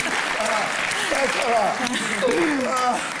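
A young man laughs out loud.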